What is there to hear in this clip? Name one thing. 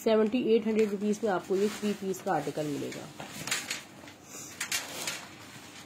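Thin fabric rustles as it is handled.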